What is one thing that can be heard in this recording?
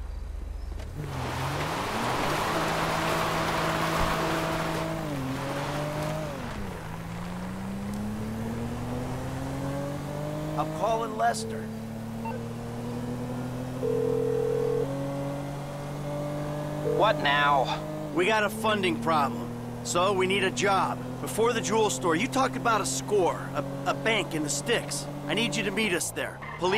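A car engine hums and rises in pitch as it picks up speed, dropping back with each gear change.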